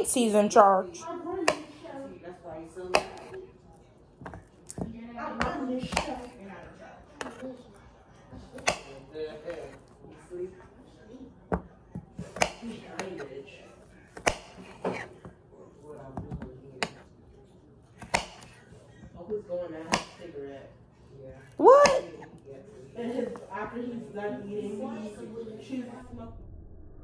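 A knife chops through cucumber and taps on a cutting board.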